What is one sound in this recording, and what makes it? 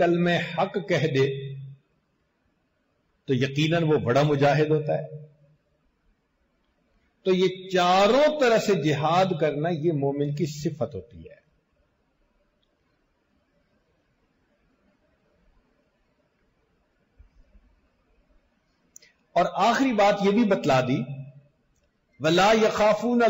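An elderly man speaks calmly into a close microphone, with pauses between phrases.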